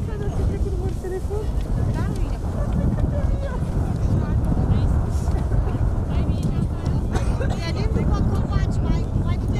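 Wind rumbles strongly across an open space.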